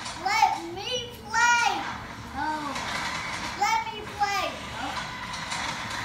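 A young girl talks expressively nearby.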